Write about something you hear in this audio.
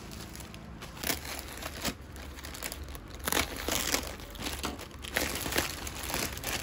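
Plastic packaging crinkles and rustles as hands handle it.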